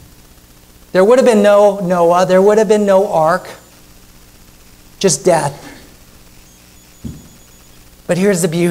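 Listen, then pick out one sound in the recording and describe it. A man speaks earnestly through a microphone in a large echoing hall.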